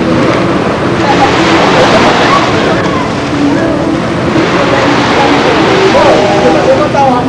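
A man and a boy talk and call out close by.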